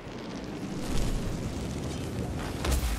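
A fireball explodes with a loud boom.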